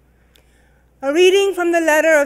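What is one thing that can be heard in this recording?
A woman sings through a microphone in a large echoing room.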